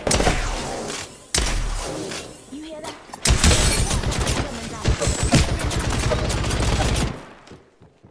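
A video game energy rifle fires in rapid bursts.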